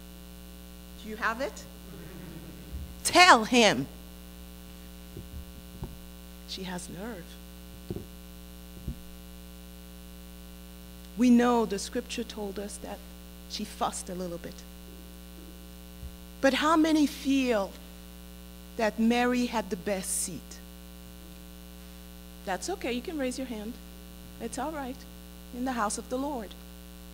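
A woman preaches with animation through a microphone, with pauses between phrases.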